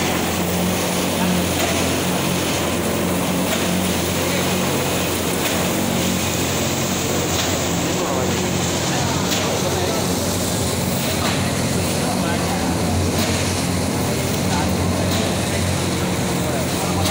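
A machine hums and rumbles steadily with rollers turning.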